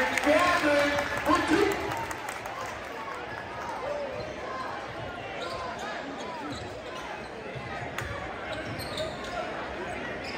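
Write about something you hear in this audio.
A crowd cheers and shouts loudly in a large echoing gym.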